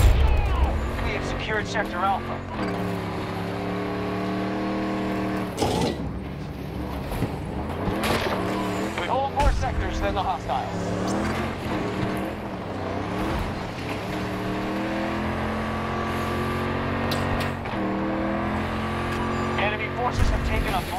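An armoured wheeled vehicle's engine drones as it drives, rising and falling in pitch.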